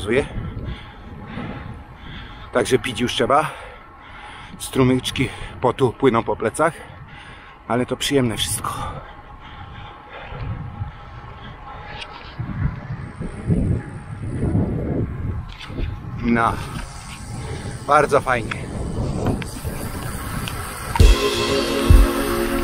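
Wind rushes against a microphone outdoors.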